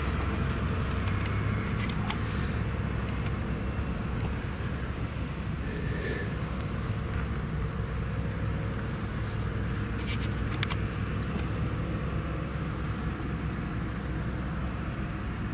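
A forage harvester drones loudly nearby.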